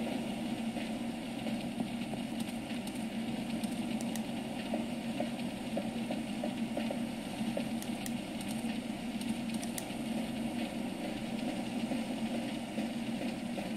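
Flames crackle through a small speaker.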